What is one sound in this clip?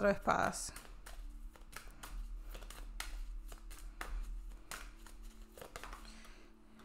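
Cards shuffle and slide against each other with soft flicks.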